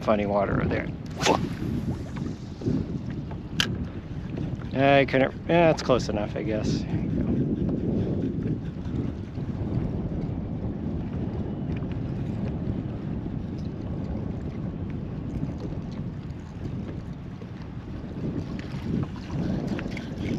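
Wind blusters steadily across open water.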